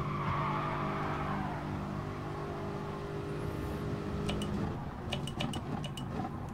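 A race car engine drones at high revs, then drops as the car slows.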